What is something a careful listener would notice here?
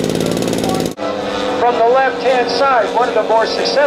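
A model airplane engine drones in the air, rising and falling in pitch.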